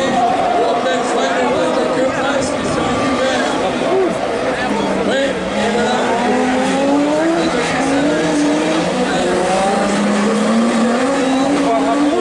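Racing car engines roar and rev loudly as cars speed past.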